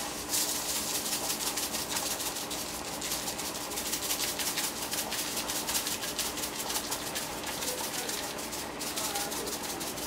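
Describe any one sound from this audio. A shaker rattles rapidly as seasoning is shaken out.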